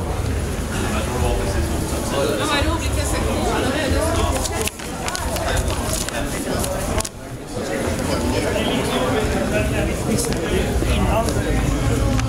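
A crowd of men and women chatters nearby in an echoing hall.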